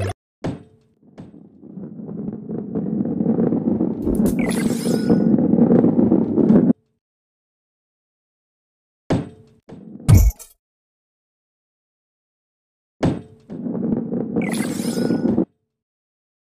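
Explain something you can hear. A heavy ball rolls and rumbles over a wooden track.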